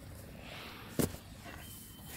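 A shoe drops onto grass with a soft thud.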